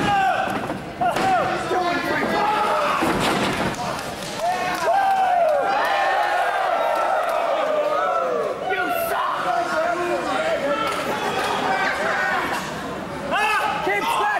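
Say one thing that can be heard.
Bodies slam heavily onto a wrestling mat.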